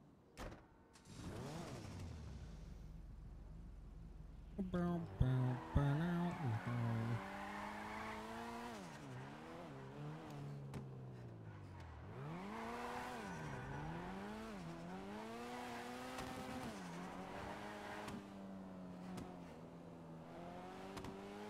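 A sports car engine revs hard and climbs through the gears.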